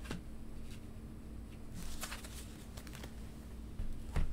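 A playing card slides softly across a cloth surface.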